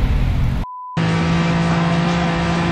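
A racing car engine drones at a steady high pitch.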